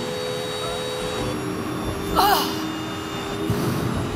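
A woman cries out through a headset microphone.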